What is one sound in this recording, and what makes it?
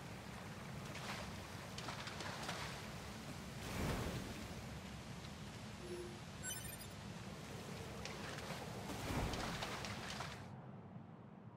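Water splashes as footsteps wade through it.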